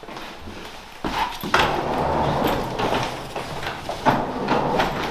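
Suitcase wheels roll and rumble across the floor.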